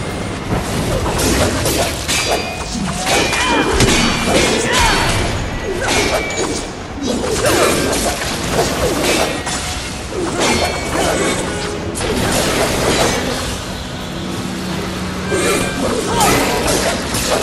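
Blades clash and strike in a fast fight.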